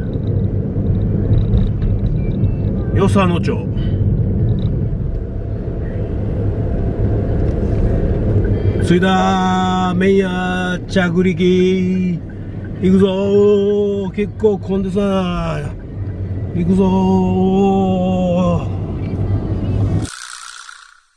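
Tyres rumble steadily on the road from inside a moving car.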